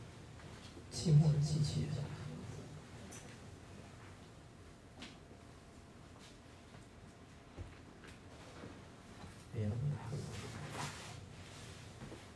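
A young man speaks briefly and calmly into a microphone, heard close.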